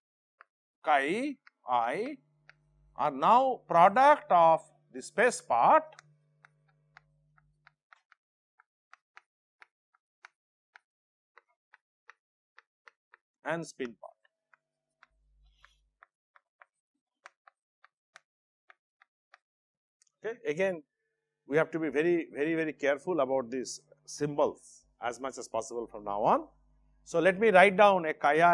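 A middle-aged man lectures calmly into a microphone, in bursts with long pauses.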